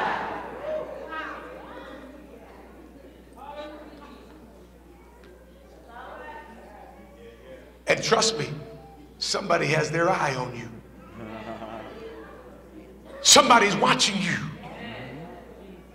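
A man preaches with animation through a microphone in a large echoing hall, pausing and then raising his voice.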